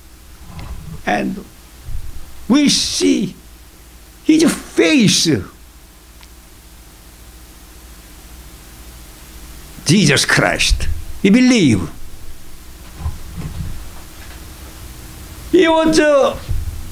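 An elderly man speaks with feeling into a microphone, in short bursts with pauses.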